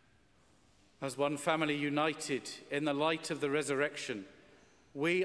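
A man chants in a steady sung voice through a microphone.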